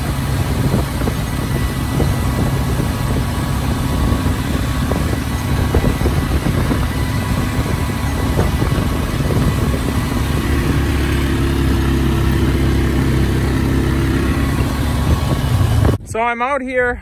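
A tractor engine rumbles steadily as a planter rolls over a field.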